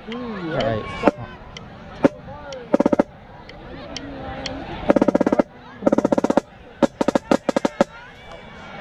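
A snare drum is struck with sharp, scattered hits and quick rolls.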